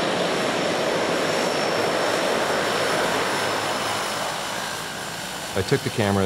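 A propeller plane's engines roar loudly as it rolls down a runway.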